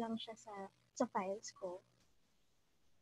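A young woman speaks briefly and with animation through an online call.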